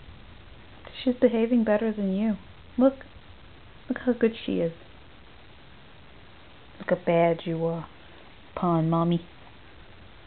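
A cat meows loudly and repeatedly, close by.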